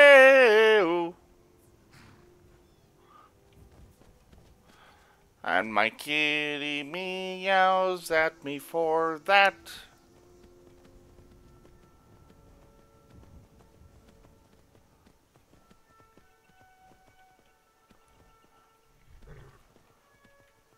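A horse's hooves thud steadily on the ground.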